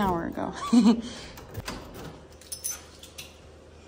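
A key clicks in a door lock.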